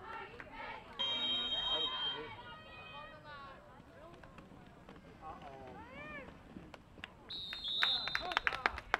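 A referee's whistle blows sharply twice.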